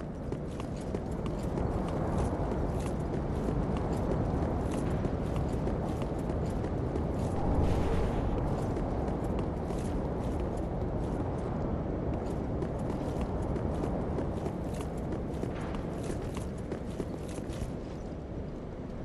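Armoured footsteps clink and crunch quickly on stone.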